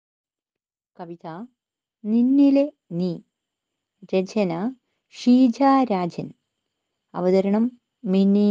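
A woman recites slowly and calmly, close to a microphone.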